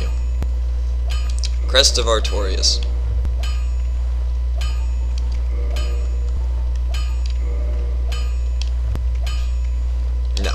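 Short menu chimes click again and again.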